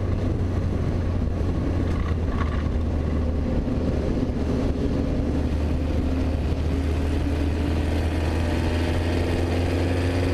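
Wind rushes hard past the open cockpit.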